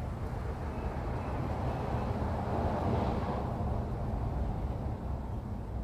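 Wind gusts steadily outdoors, rumbling against the microphone.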